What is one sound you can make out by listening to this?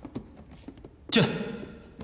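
A young man speaks briefly.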